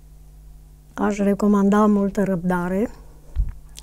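An older woman speaks calmly into a close microphone.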